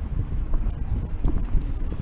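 Bicycle tyres rattle over cobblestones.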